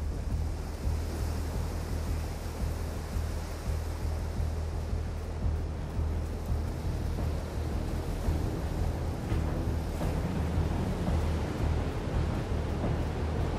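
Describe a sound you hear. Footsteps crunch quickly on sand.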